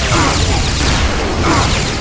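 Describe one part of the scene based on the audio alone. Energy weapons fire with sharp zaps and bangs.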